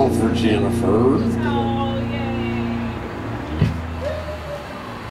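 A live rock band plays loudly, then the music fades down.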